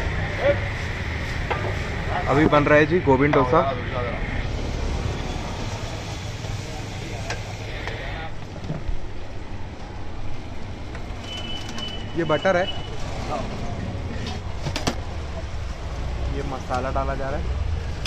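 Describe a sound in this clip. Batter sizzles on a hot griddle.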